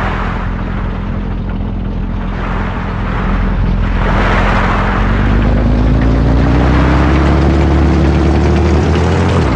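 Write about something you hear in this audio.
Tank treads clank along a road.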